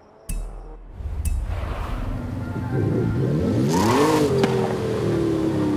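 A car engine revs and roars, rising and falling in pitch.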